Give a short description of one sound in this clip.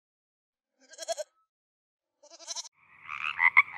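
Young goats bleat.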